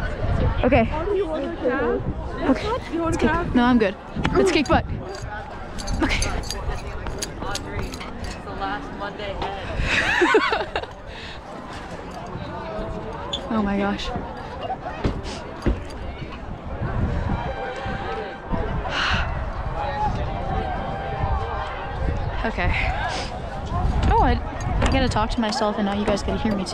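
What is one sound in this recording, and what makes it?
A crowd of people chatter outdoors in the distance.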